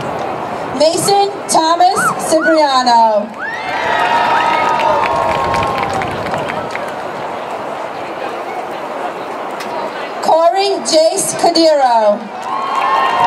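A woman reads out names through a loudspeaker, echoing outdoors.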